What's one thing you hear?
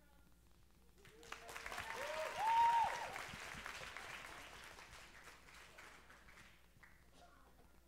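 An audience claps and cheers in a large hall, then the applause fades.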